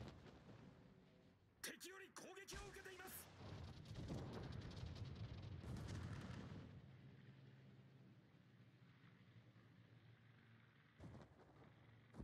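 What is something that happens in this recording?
A warship's engine rumbles low and steady.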